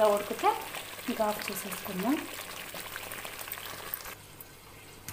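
A thick sauce bubbles and sputters as it simmers in a pot.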